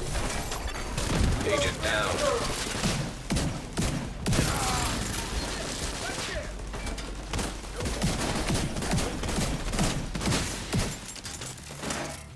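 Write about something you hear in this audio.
Guns fire in sharp, rapid bursts.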